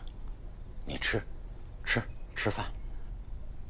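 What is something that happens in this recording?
An older man speaks urgently and close by.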